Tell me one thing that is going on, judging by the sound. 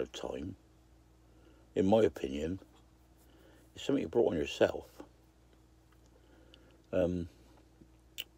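An elderly man speaks calmly in short bursts close to the microphone.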